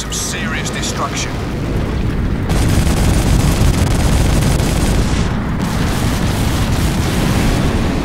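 A gunship's engine roars overhead.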